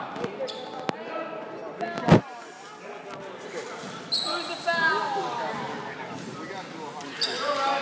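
Sneakers squeak sharply on a gym floor.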